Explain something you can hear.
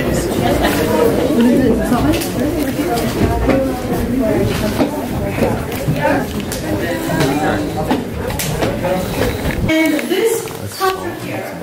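Many people talk at once close by, their voices echoing in a stone cave.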